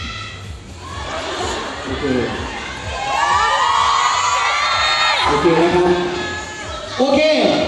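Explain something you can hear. A crowd of young women scream and cheer loudly in a large hall.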